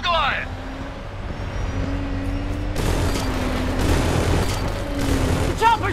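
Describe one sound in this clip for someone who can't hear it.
A heavy armored vehicle's engine rumbles nearby.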